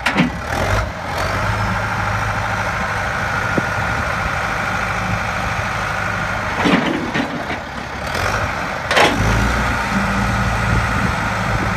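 A loader engine revs up as its bucket lifts.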